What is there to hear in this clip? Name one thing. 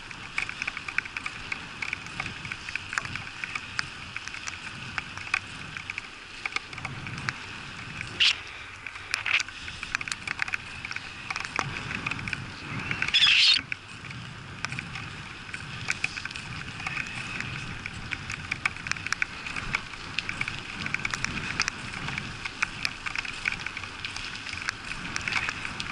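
Wind rushes and buffets against the microphone.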